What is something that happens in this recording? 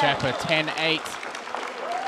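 A small crowd claps in a large echoing hall.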